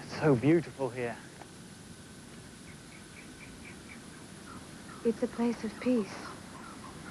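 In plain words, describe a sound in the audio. A man speaks loudly outdoors in short bursts.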